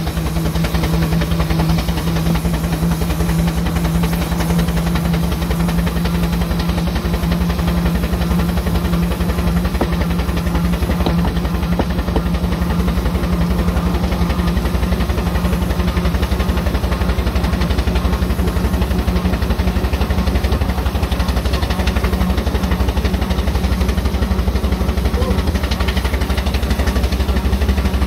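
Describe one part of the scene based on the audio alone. A small steam engine hisses and rumbles steadily close by.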